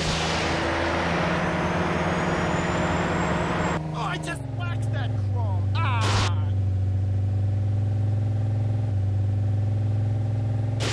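A car engine roars at high speed, then drops to a lower hum.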